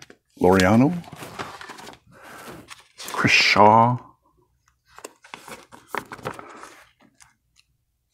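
Binder pages rustle as they are turned.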